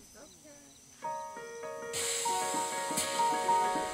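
An electronic keyboard plays chords.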